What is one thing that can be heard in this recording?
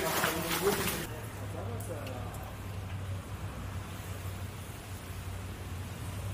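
Water gurgles and swirls down a drain.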